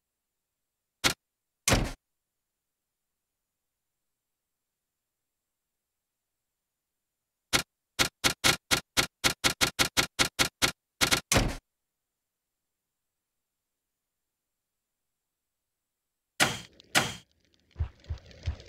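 A game interface whooshes as panels slide open.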